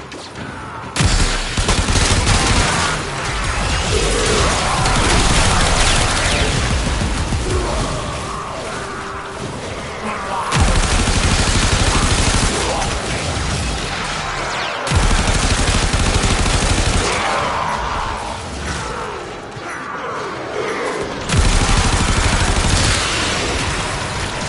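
Rapid gunfire and energy blasts crackle in a video game.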